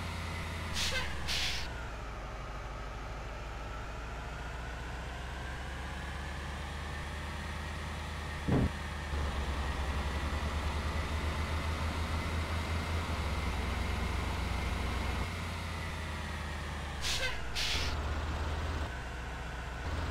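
A bus engine hums steadily, rising and falling in pitch as it climbs a winding road.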